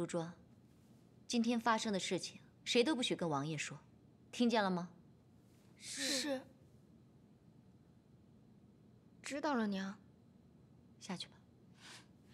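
A woman speaks firmly and clearly, close by.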